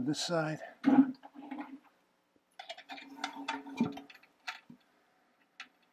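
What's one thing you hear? Plastic parts knock and rattle inside a toilet tank.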